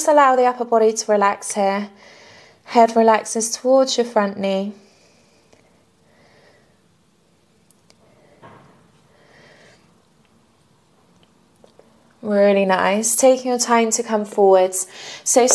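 A young woman speaks calmly and clearly into a close microphone, pausing now and then.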